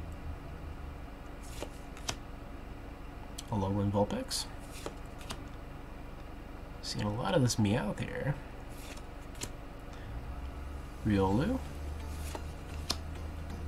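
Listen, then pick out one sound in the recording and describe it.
Trading cards rustle and slide as a hand shuffles them.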